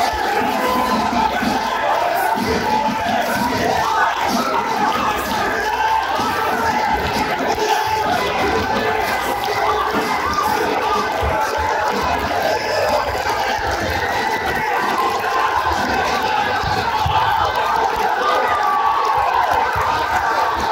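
A large indoor crowd cheers and shouts loudly.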